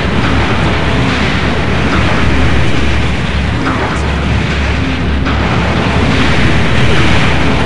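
Gunfire rattles rapidly.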